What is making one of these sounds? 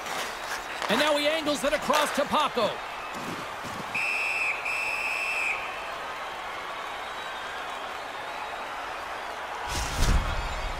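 A crowd murmurs and cheers in a large arena.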